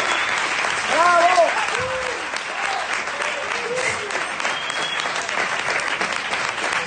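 An audience claps and cheers in a lively room.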